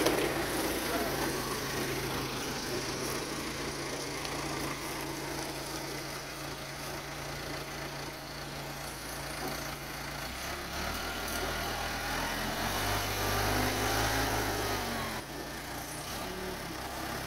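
A diesel tractor engine rumbles steadily and revs up.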